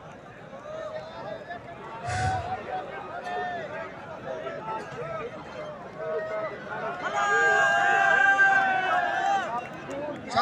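A large outdoor crowd of men chatters and calls out.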